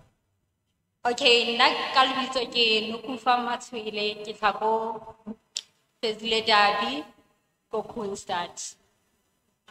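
A woman speaks into a microphone with animation, heard through a loudspeaker in an echoing hall.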